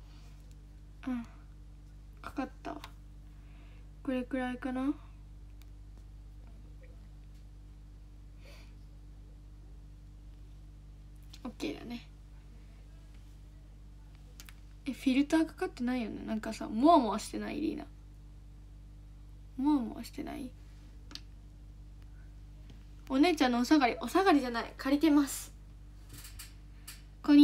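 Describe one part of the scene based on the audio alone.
A young woman talks casually into a nearby microphone, in short bursts with pauses.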